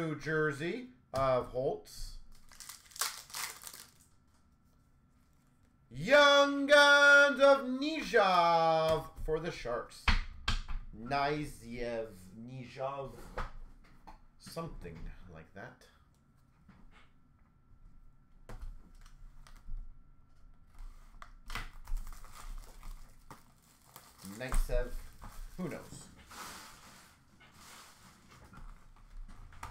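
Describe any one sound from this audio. Card packs rustle and tap as hands sort them.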